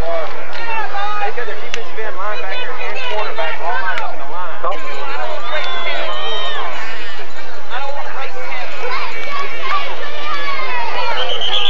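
Teenage boys shout and call out across an open outdoor field.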